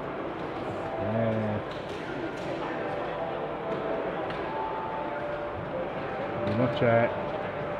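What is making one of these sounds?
An electronic dartboard beeps.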